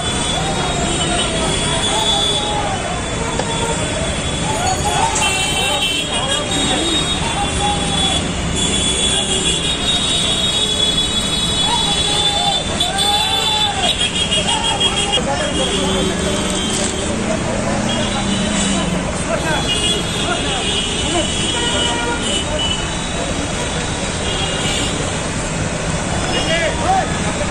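Traffic hums on a busy road.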